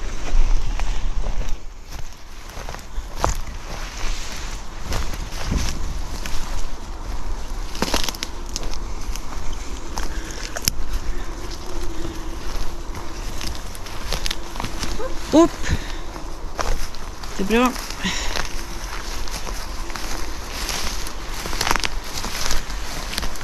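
Footsteps crunch and rustle through low undergrowth.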